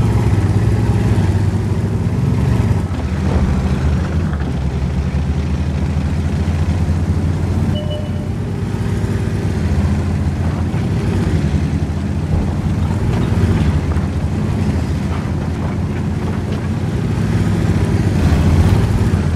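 Tank tracks clank and squeal over the ground.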